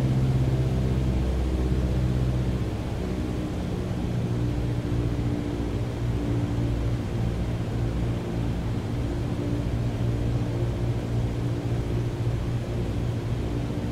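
A single-engine propeller plane drones in cruise, heard from inside the cockpit.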